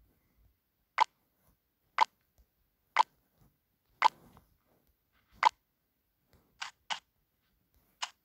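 Short electronic blips sound one after another as menu choices are picked.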